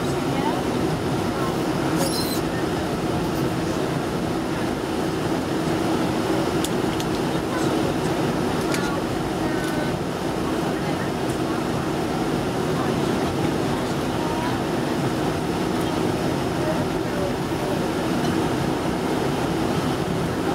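Jet engines roar steadily as an airliner taxis.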